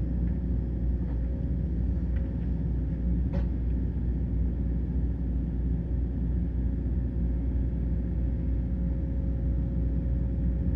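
An excavator engine rumbles steadily nearby.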